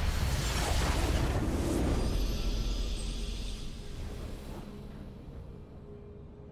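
A triumphant game fanfare swells loudly, then fades away.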